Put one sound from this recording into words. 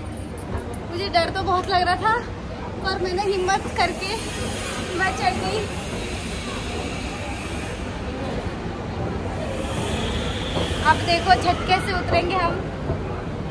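A young woman talks cheerfully, close by.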